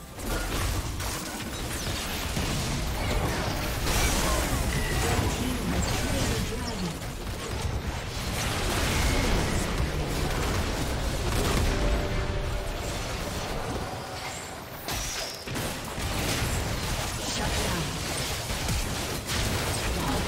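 Spell effects whoosh, crackle and burst in a fast fight.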